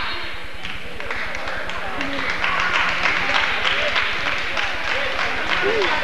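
A crowd cheers and claps in a large echoing gym.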